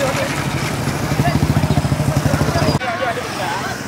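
Motorbike engines rumble close by.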